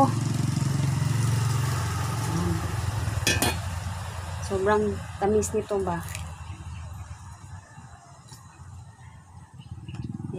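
A young woman tears open a fruit's rind with soft cracks.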